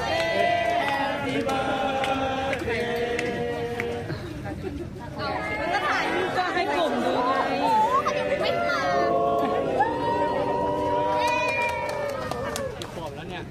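Young women sing together outdoors.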